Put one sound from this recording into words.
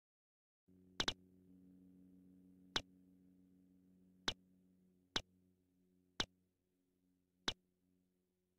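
Game menu selections click sharply.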